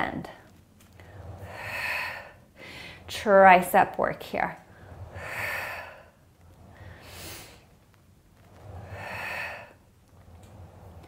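A young woman breathes out audibly in slow, steady breaths.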